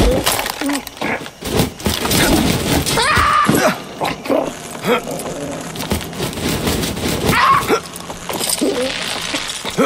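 Metal rungs clank as someone climbs a ladder.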